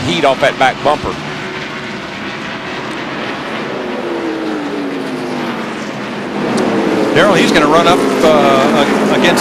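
Several race car engines roar loudly as cars speed past.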